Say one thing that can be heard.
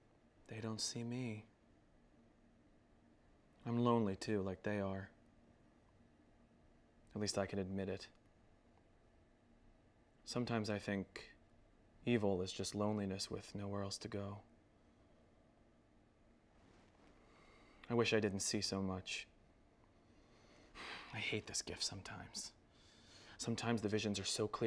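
A man speaks slowly and quietly, close by, with long pauses.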